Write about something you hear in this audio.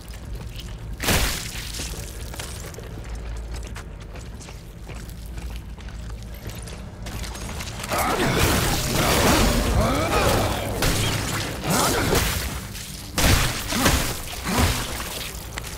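Heavy boots step on rocky ground.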